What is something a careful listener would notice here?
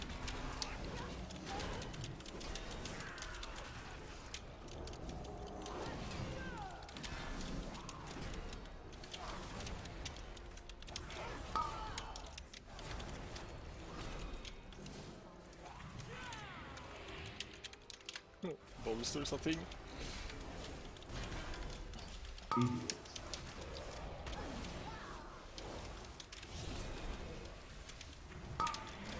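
Magic spells crackle and burst in a busy fantasy battle.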